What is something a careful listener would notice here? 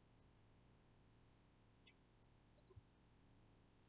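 A young woman bites into food and chews quietly.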